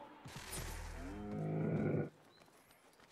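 A camel groans loudly.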